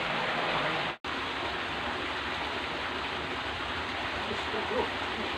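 Water rushes loudly down a small weir.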